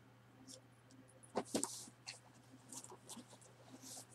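A cardboard box flap is pulled open.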